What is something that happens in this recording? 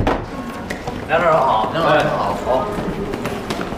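A man greets someone in a friendly voice.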